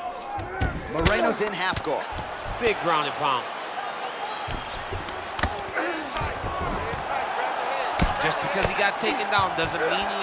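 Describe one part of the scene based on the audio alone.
Punches thud against a body in quick blows.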